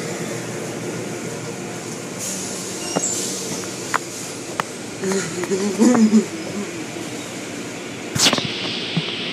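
Water sprays and drums against a car's windows in a car wash.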